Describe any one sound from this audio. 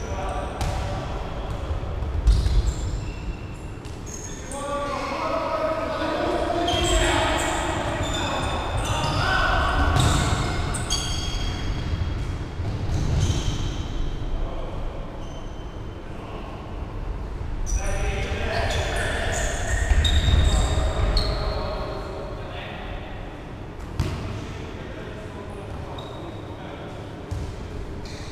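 Sneakers squeak on a hard floor.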